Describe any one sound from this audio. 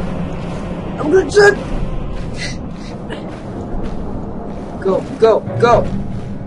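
A young man exclaims loudly close to a microphone.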